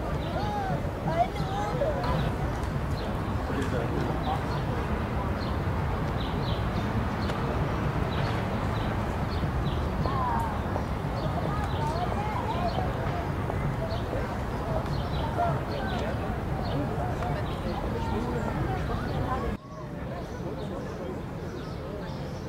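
A hawk chick peeps softly from a nest.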